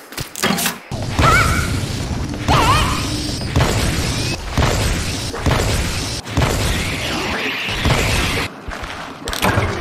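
A giant insect buzzes loudly.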